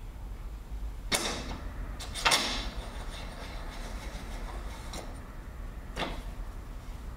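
Metal parts of a bicycle fork click and clatter.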